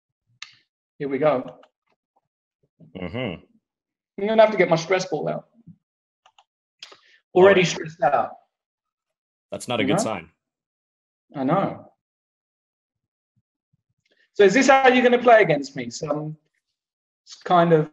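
A man talks with animation into a microphone, in short bursts.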